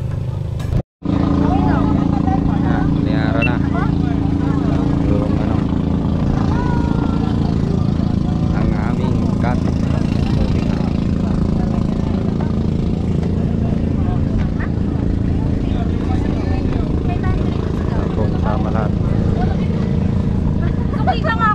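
Women talk nearby with animation.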